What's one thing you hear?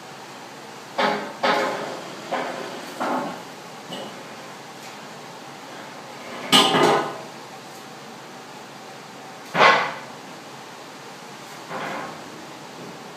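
Metal clanks and rattles as a steel frame is moved.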